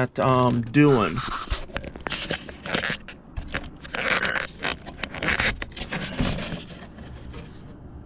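Cardboard and plastic rustle and knock as they are handled close by.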